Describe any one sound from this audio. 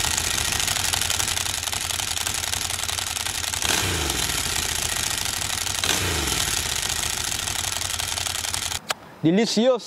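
A motorcycle engine idles loudly up close, revving briefly twice.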